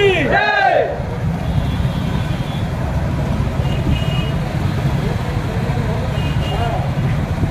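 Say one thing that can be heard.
Motorcycle engines rumble steadily close by.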